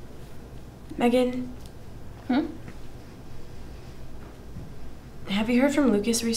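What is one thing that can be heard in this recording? A young woman speaks calmly and close by, in short bursts.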